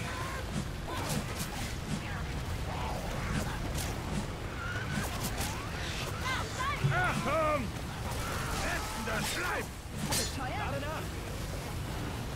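A blade slashes and thuds against attackers.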